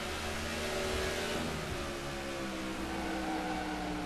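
Other race cars roar past close by.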